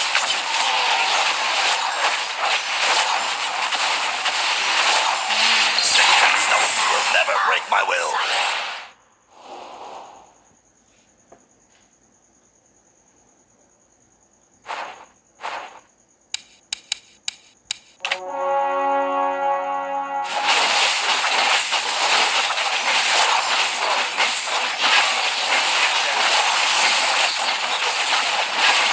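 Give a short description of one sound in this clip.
Fighting sound effects in a video game clash and crackle loudly.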